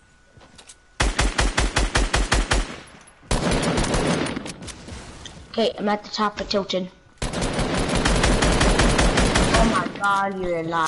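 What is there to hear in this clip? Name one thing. A rifle fires in rapid bursts of shots.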